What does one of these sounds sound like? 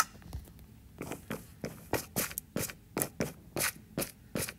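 Footsteps tap quickly down stone steps.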